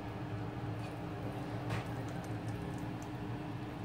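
A glass lid clinks onto a metal pan.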